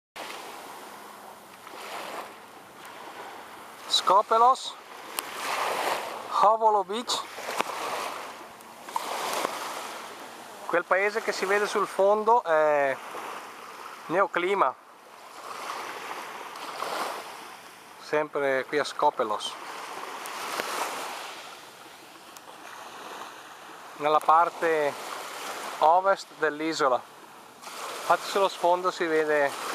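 Small waves wash gently onto a pebble shore and draw back.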